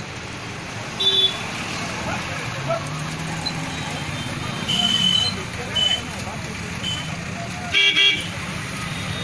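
Vehicle horns honk in short blasts.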